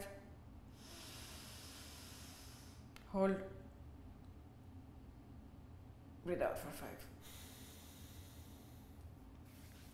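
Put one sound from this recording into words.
A young woman breathes slowly and audibly through her nose.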